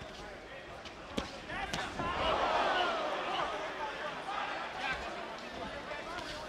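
Gloved punches land with sharp thuds.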